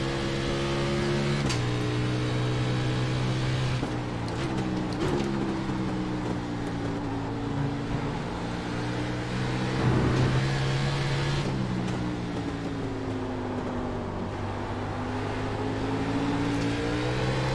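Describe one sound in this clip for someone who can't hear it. A race car engine roars steadily, its pitch dropping and rising with gear shifts.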